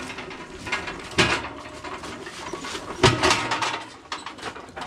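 A hand cart rattles over paving stones outdoors.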